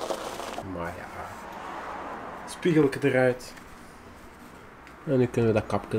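A cloth rubs against a car mirror.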